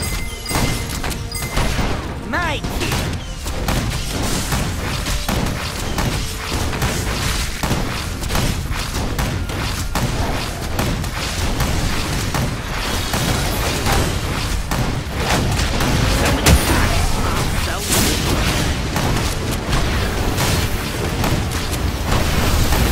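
Game combat effects clash and burst in quick succession.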